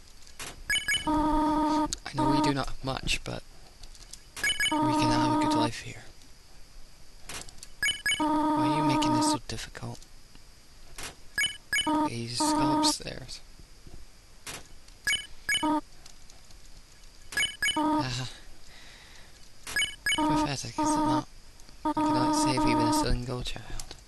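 Short electronic blips chirp rapidly as game text types out.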